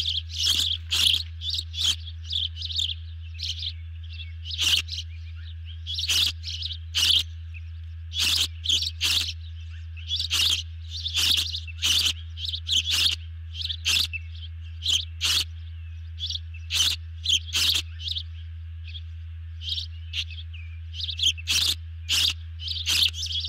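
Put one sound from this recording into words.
A large bird calls with sharp, repeated high chirps.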